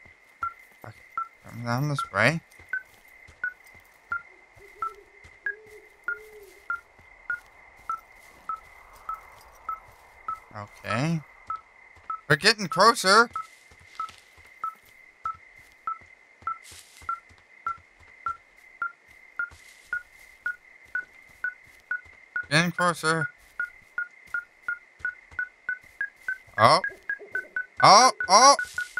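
An electronic device beeps steadily, the beeps growing faster toward the end.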